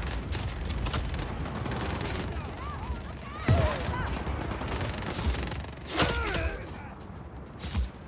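Gunfire and explosions boom in a game battle.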